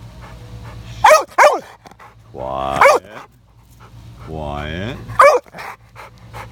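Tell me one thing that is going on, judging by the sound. A dog barks sharply a few times.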